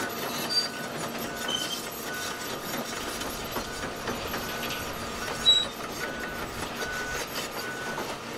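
Excavator tracks clank and grind over gravel.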